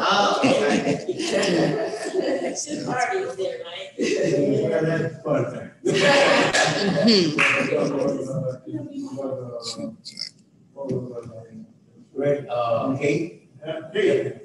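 An elderly woman speaks with animation into a microphone.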